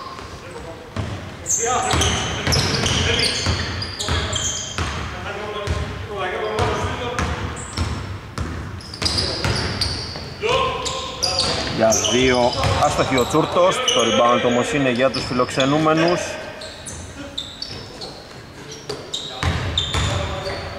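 A basketball bounces on a hard court in a large echoing hall.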